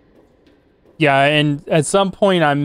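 A man speaks loudly with animation into a close microphone.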